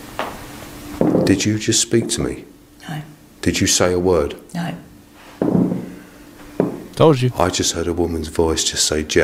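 An elderly man speaks quietly and earnestly.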